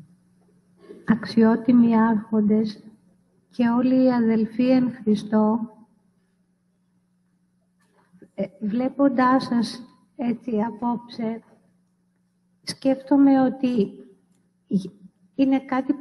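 A woman chants a slow hymn into a microphone in a large echoing hall.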